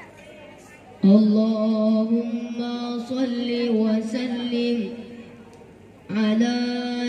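A group of young men sing together in unison through a loudspeaker.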